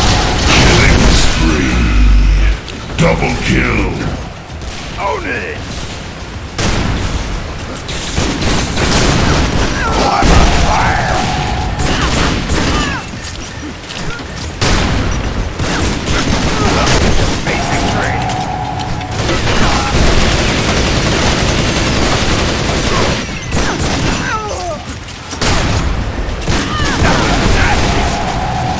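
Gunfire and explosions from a game blast repeatedly.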